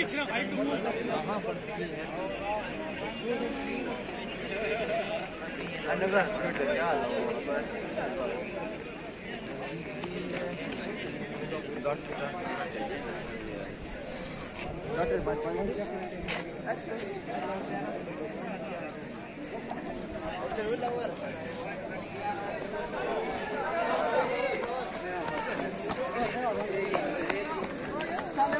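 A crowd of young men chatter and call out outdoors nearby.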